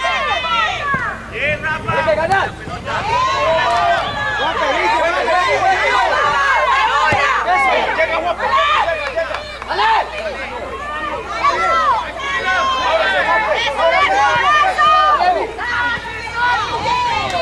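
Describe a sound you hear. A crowd of children shouts and cheers outdoors.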